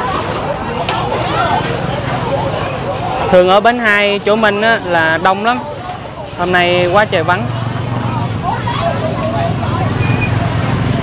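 Many people chatter in a busy outdoor crowd.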